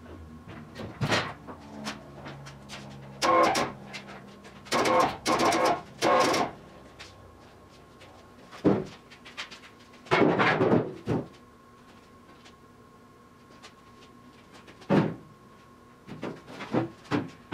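Metal car body parts clank and rattle as they are handled.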